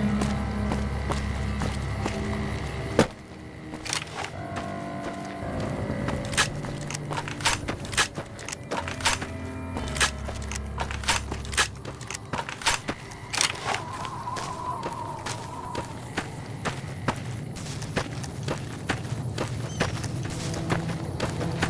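Footsteps crunch steadily on dry gravel.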